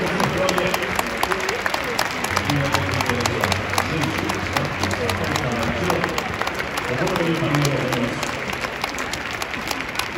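A crowd claps throughout.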